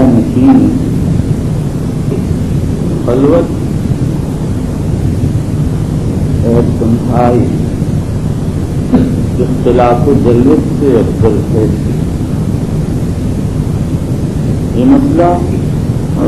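An elderly man speaks slowly and calmly into a microphone, heard over a loudspeaker.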